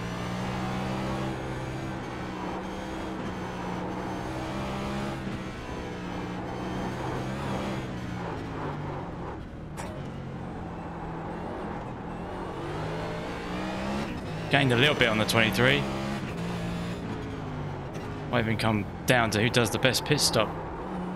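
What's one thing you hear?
A race car engine roars, revving up and dropping with each gear change.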